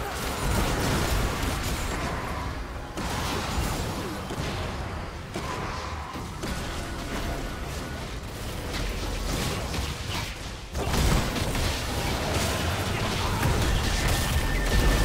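Fantasy spell effects crackle and whoosh in a noisy fight.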